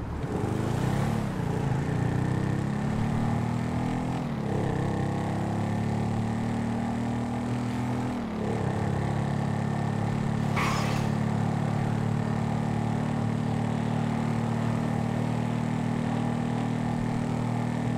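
A motorcycle engine revs up and shifts through the gears.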